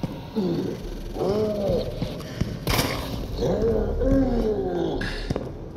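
Footsteps thud on a hard metal floor.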